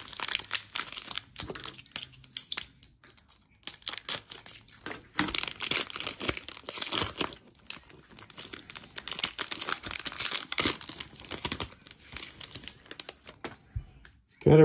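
A foil wrapper crinkles and rustles as it is torn open.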